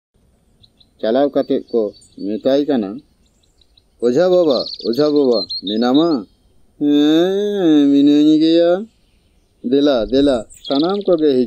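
A man speaks with animation, close by.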